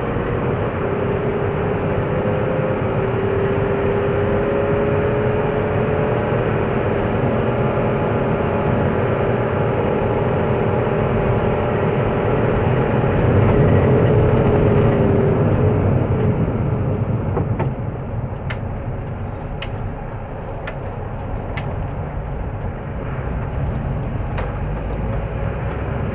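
A car engine hums steadily as the car drives along a road.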